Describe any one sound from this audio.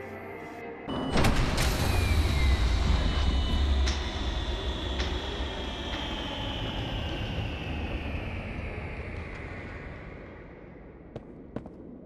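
Machinery powers down with a deep thud and a long falling whine.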